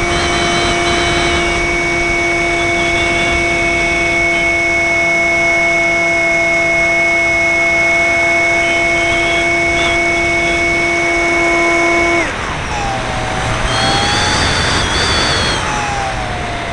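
A small model plane's motor whines steadily, then drops in pitch and wavers.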